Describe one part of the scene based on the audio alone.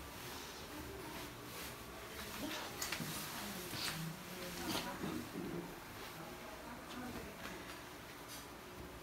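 A young woman talks quietly close by.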